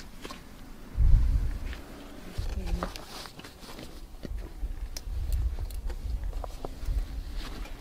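A bicycle clatters and thumps as it is lifted and turned over.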